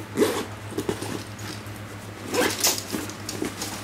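A zipper slides open.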